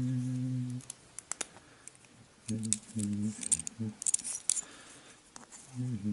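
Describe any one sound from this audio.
A small metal tool scrapes against wood.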